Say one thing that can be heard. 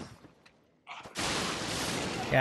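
A fireball whooshes as it is cast.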